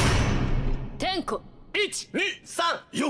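A woman shouts a sharp command.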